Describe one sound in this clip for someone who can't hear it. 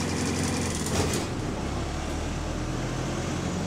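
A bus engine changes to a lower rumble as the bus slows.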